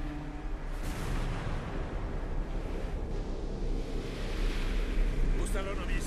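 Rough sea waves churn and crash in a storm.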